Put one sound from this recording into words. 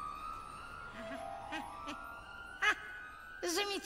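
An elderly man cries out in delighted excitement, close by.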